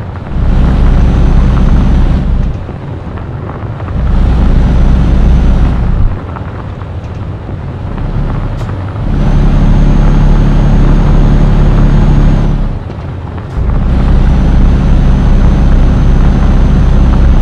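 A heavy diesel truck engine drones, surging louder and dropping back again and again with the throttle.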